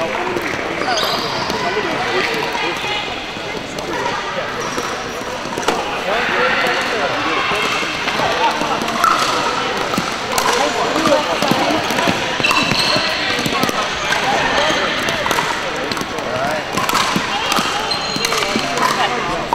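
Many people talk and call out around an echoing indoor hall.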